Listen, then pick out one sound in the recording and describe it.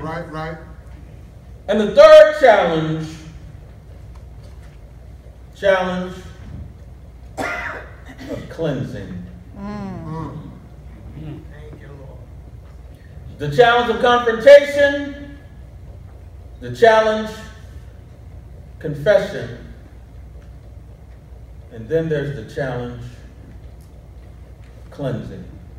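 A man speaks slowly and deliberately into a microphone, with pauses, in a room with a slight echo.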